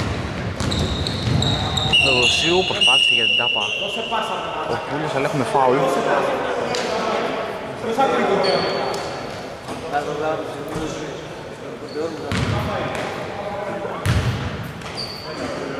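Several men shout and call out to each other in a large echoing hall.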